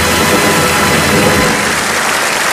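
An orchestra plays a final chord.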